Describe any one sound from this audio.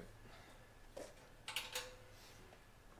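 A spare tyre carrier swings open with a metal clank.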